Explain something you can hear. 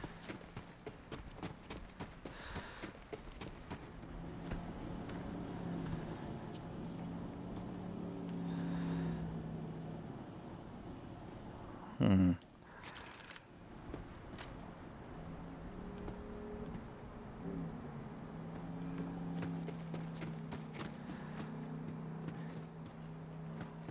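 Footsteps crunch on dry gravel.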